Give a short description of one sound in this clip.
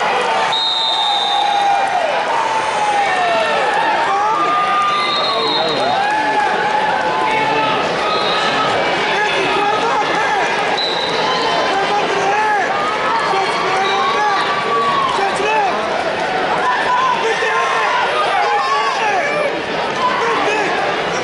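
A large crowd chatters and calls out in a big echoing hall.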